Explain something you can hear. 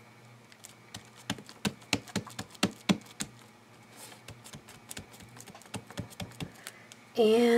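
Paper rustles and taps softly as fingers press it down.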